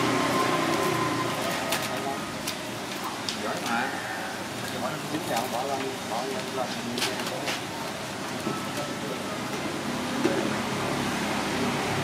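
Metal tongs clink and scrape on crinkling foil.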